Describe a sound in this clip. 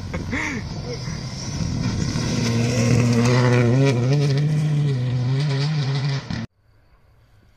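A rally car engine roars loudly and revs as the car speeds past.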